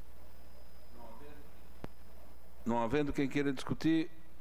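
A man speaks calmly through a microphone over loudspeakers in a large room.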